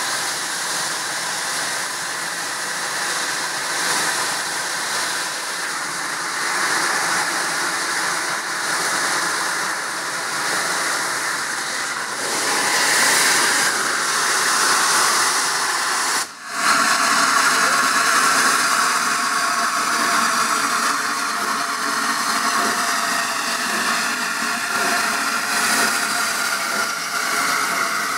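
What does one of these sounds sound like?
A steam locomotive chugs slowly past, close by.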